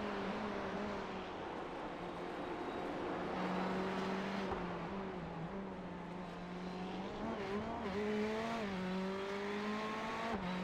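A race car engine drones steadily, rising and falling in pitch as it shifts gears.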